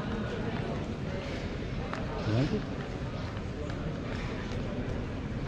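Several men and women chatter nearby outdoors.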